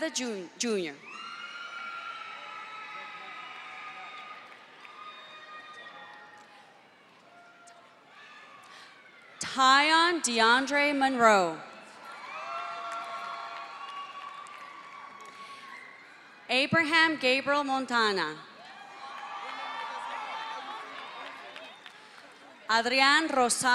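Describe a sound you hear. People applaud.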